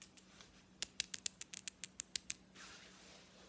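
Fingers tap and knock right against the microphone.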